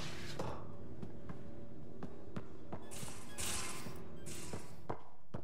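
Quick footsteps tap on a hard metal floor.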